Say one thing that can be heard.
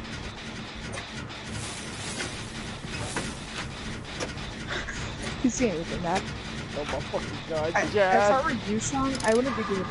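Metal parts clank and rattle as an engine is repaired by hand.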